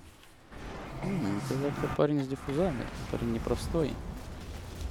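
A man exclaims with animation close to a microphone.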